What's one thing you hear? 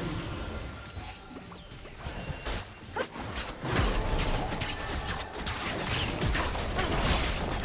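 Game spell effects crackle and burst in a fight.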